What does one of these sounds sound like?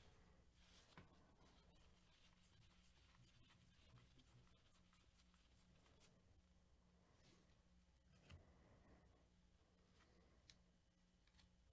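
Cards slide and tap against each other.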